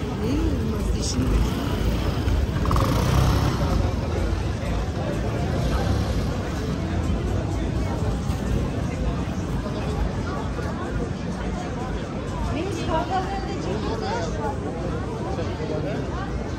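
A busy crowd chatters outdoors.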